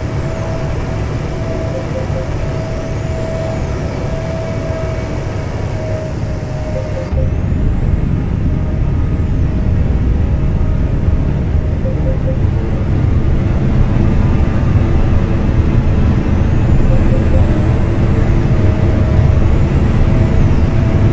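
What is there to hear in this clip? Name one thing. A car engine hums steadily, growing louder and fuller partway through.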